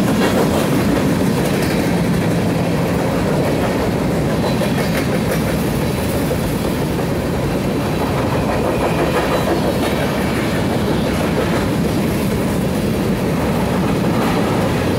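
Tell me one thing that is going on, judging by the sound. A freight train rumbles past close by, its wheels clattering steadily on the rails.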